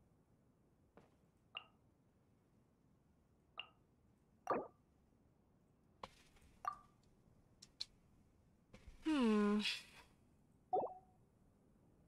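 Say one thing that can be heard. Soft interface clicks and chimes sound as menus open and close.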